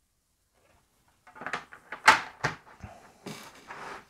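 A plastic board clacks down onto a table.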